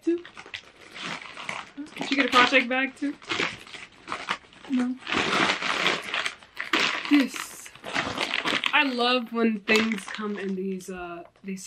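A paper bag crinkles and rustles.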